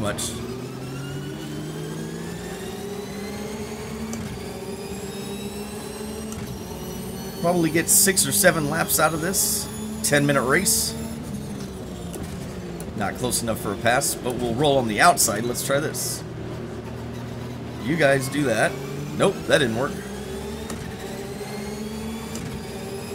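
A racing car engine drones steadily, its pitch rising and falling through the gears.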